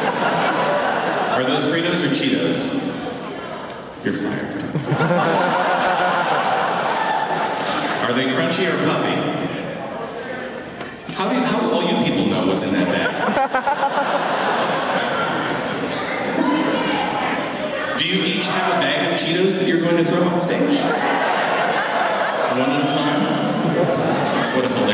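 An electric guitar is strummed loudly.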